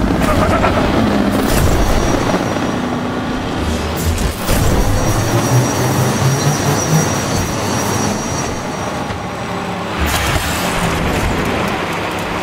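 A toy race car engine whines and roars at high speed.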